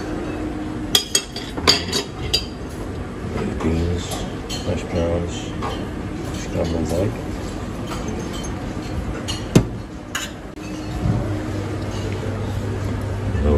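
A metal lid clanks as it is lifted and lowered on a serving dish.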